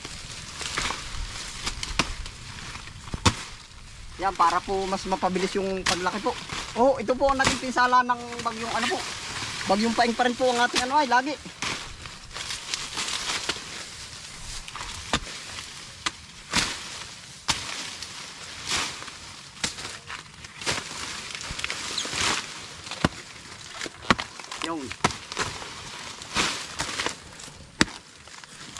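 A blade chops into banana stalks with sharp thuds.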